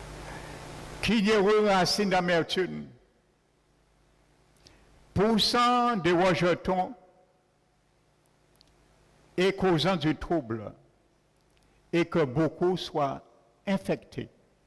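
An elderly man preaches with animation through a microphone in an echoing hall, in bursts separated by pauses.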